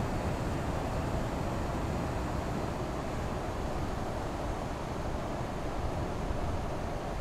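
A truck engine hums steadily as it cruises along a highway.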